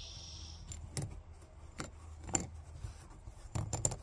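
A metal bottle cap clicks and scrapes against a tabletop.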